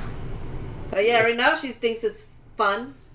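A woman speaks close by with amusement.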